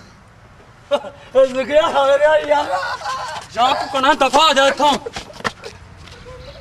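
An elderly man speaks loudly close by.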